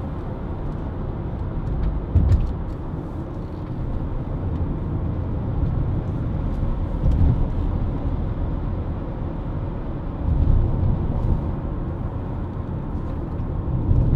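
Tyres rumble on the road with occasional bumps.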